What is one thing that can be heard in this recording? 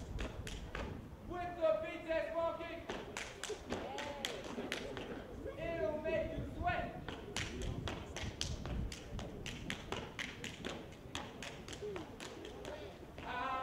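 Hard shoes tap and stamp rapidly on a hard floor.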